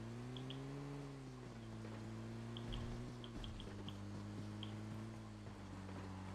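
A jeep engine drones steadily as it drives over rough ground.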